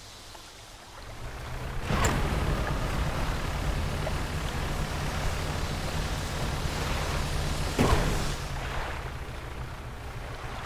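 A small boat engine chugs steadily as the boat moves across the water.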